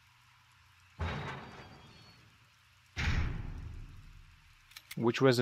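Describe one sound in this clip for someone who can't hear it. Heavy metal doors slam open with a deep, echoing boom.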